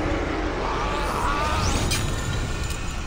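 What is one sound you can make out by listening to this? A magical energy whooshes through the air.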